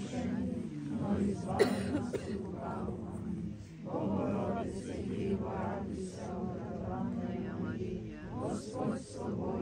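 A crowd of men and women prays aloud together outdoors, reciting in unison.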